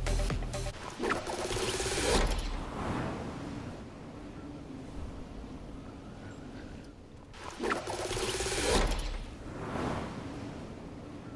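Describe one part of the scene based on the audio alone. Air rushes past loudly as a game character launches through the air and glides.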